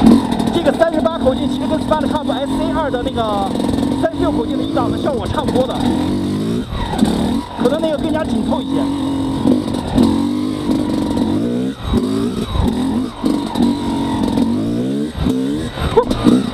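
A two-stroke dirt bike engine revs up and down.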